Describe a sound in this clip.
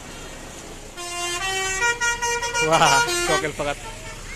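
A bus horn plays a loud, tooting melody close by.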